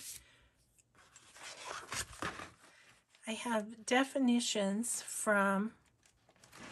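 A plastic pouch crinkles and rustles.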